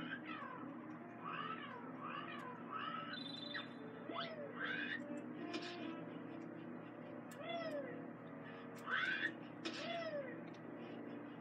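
A cartoonish game character makes chirpy, warbling sounds through a television speaker.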